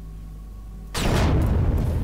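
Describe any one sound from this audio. A loud explosion bursts close by.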